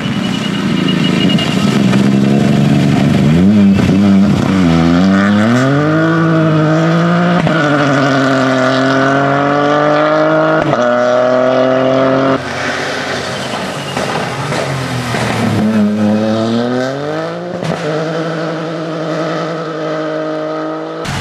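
A rally car engine roars and revs hard, shifting up through the gears.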